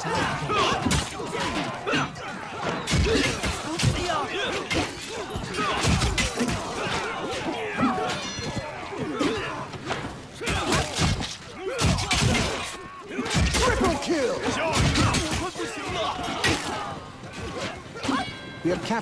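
Soldiers shout and cry out in the fighting.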